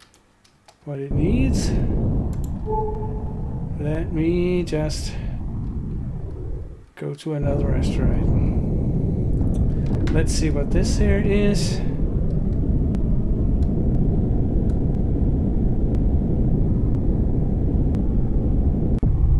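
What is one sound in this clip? A spaceship engine rumbles low and steady.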